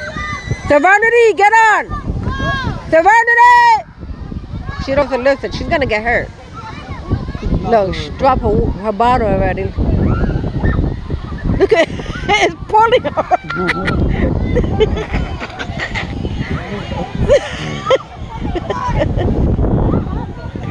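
Children shout and squeal excitedly close by, outdoors.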